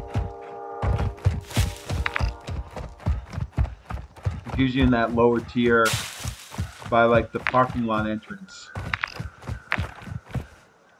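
Footsteps crunch quickly over dry grass.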